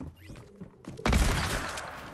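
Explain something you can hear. A gun fires loud, booming shots.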